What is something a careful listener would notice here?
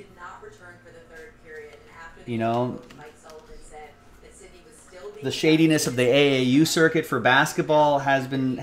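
Trading cards rustle and slide as they are shuffled.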